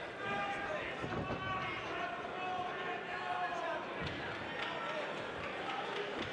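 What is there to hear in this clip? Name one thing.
Boxing gloves thud against a raised guard.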